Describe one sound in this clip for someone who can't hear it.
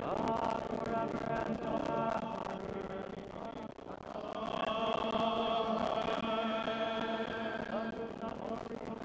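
A man chants in a resonant, echoing hall.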